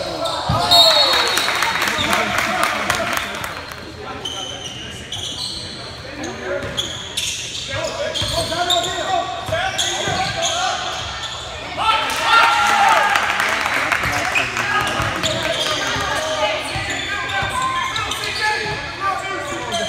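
A basketball bounces on a hard floor with echoing thuds.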